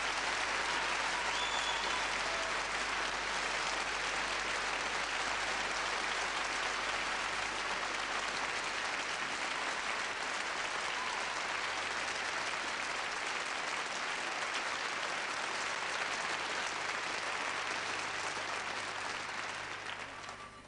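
A large audience applauds loudly in an echoing hall.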